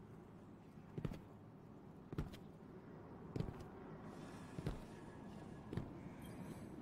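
Footsteps thud on hard ground at an even pace.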